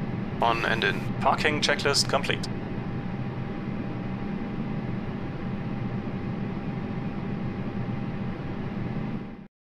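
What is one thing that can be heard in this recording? A steady low hum of aircraft systems drones in a cockpit.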